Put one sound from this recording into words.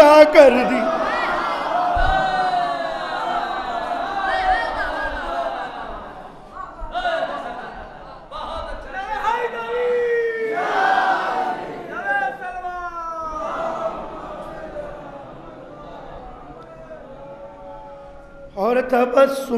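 Men in an audience call out in praise.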